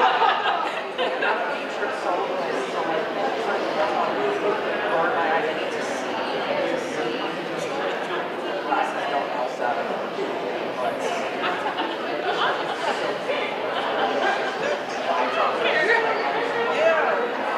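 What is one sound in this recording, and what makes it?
An audience chatters in a large echoing hall.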